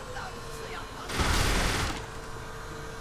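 A wooden door bangs open.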